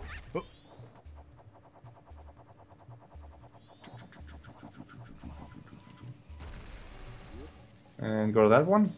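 A soft, steady electronic whirring hums.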